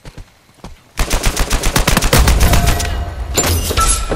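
A rifle fires in rapid bursts of gunshots.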